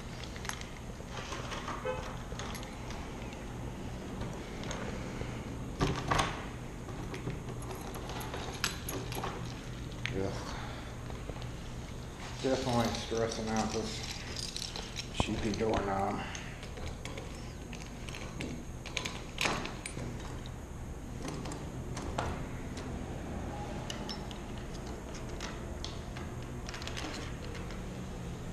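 Keys jingle close by.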